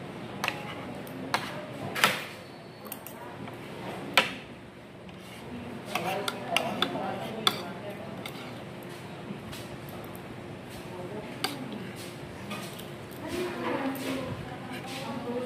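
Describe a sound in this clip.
Metal forks and spoons clink and scrape against plates.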